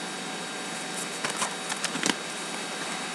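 Plastic binder pages crinkle and flap as they are turned.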